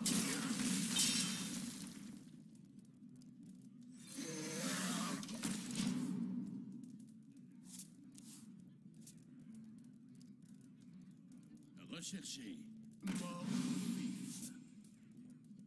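A card game makes bright magical whooshes and chimes as cards are played.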